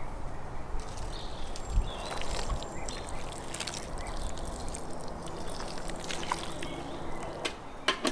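Thick liquid pours and splashes into a pot.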